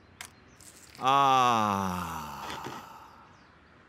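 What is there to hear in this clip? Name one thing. A young man lets out a long, falling sigh.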